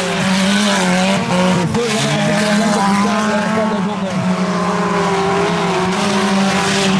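Car engines roar and rev loudly as cars race on a dirt track outdoors.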